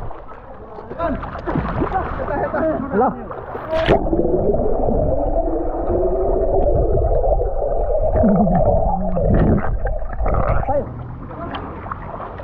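Water splashes and sloshes at the surface of a pool.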